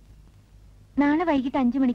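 A woman sings loudly and clearly, close by.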